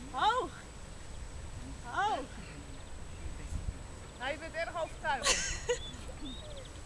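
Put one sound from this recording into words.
A young woman calls to a dog in a high, coaxing voice outdoors.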